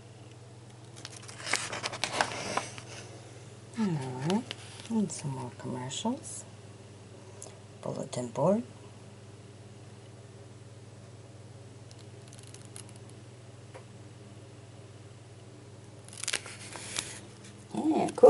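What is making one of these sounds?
Paper pages rustle and crinkle as they are turned.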